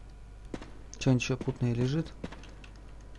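A young man speaks briefly through a headset microphone.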